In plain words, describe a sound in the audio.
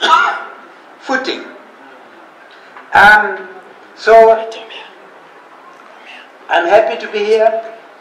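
An elderly man reads out slowly and with feeling through a microphone, with pauses between phrases.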